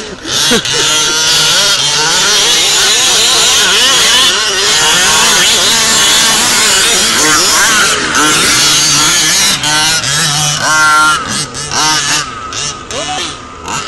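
Several small electric motors whine and rev up and down as toy cars race.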